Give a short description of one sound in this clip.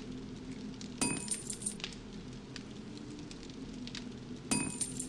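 A short metallic chime rings out twice.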